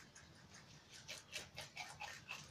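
Rabbits munch and crunch on fresh leaves close by.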